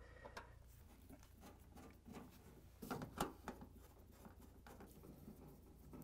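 A screwdriver scrapes and clicks against a metal panel.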